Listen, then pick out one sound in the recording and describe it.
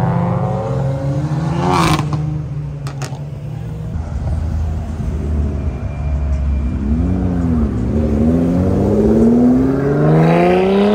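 Traffic rumbles past on a busy street outdoors.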